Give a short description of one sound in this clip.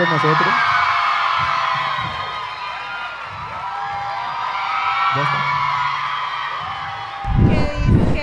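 A large audience laughs loudly.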